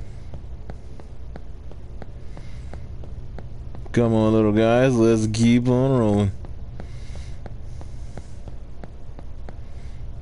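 Light footsteps patter quickly as a figure runs.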